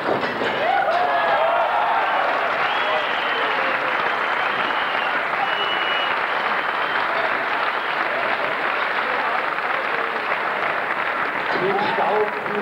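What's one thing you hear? An audience applauds and cheers in a large hall.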